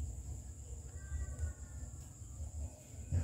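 A kitten mews.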